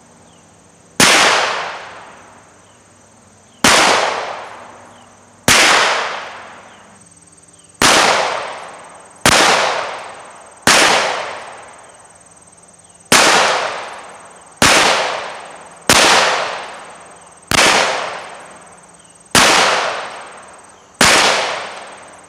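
Gunshots crack one after another outdoors, each echoing away.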